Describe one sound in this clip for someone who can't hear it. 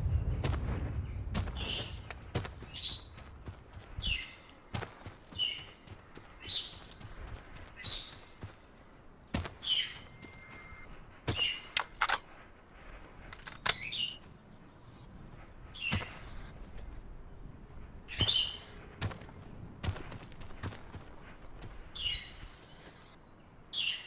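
Footsteps crunch on grass and gravel as a soldier runs.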